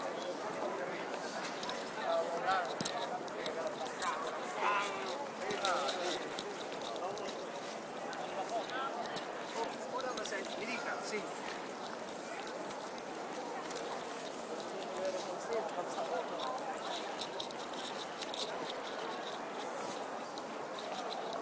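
A crowd of people chatter in the open air.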